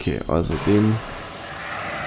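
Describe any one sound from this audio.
A fire extinguisher sprays with a steady hiss.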